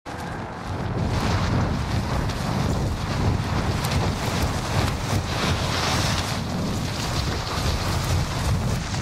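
Wind rushes loudly and steadily past during a fast fall.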